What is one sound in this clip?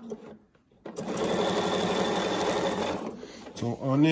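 A sewing machine hums and stitches rapidly.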